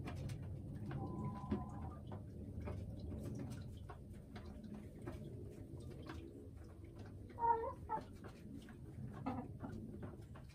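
A hen clucks softly close by.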